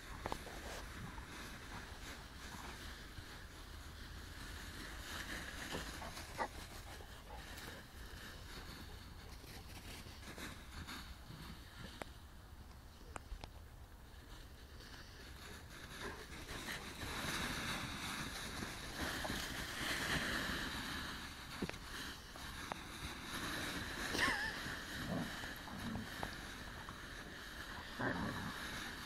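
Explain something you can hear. Dry leaves rustle and crunch as dogs romp through them.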